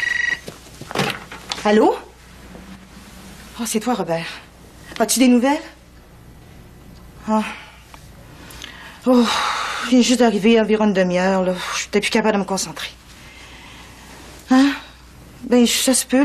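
A woman speaks into a phone, tense and upset.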